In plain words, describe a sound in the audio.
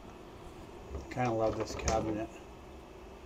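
A wooden cabinet door clicks open.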